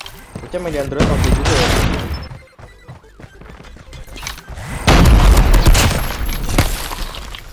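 Gunfire bursts out in loud volleys.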